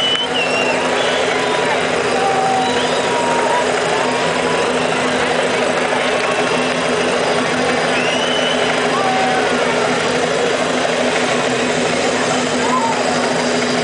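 People in a crowd whistle shrilly.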